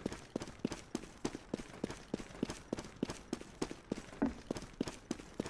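Quick footsteps run steadily over stone.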